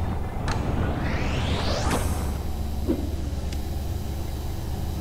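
A laser fires with a rising electronic sweep.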